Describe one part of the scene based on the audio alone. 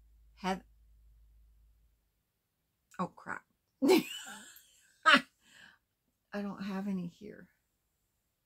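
A woman speaks with animation close to a microphone, with pauses.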